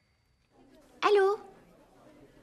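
A woman speaks a short, surprised phrase.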